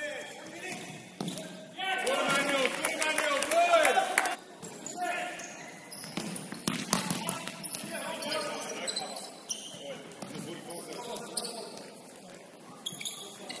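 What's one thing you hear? Players' shoes squeak sharply on a hard floor in a large echoing hall.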